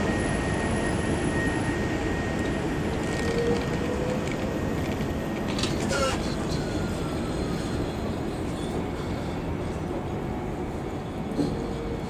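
A tram rumbles past close by on its rails.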